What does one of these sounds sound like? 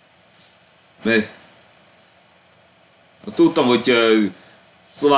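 A young man speaks calmly through a microphone, in short phrases with pauses.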